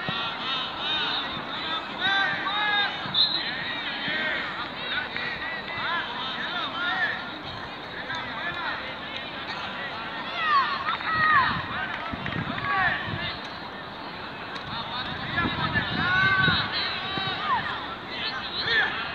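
Several men and boys shout and call out across an open outdoor field.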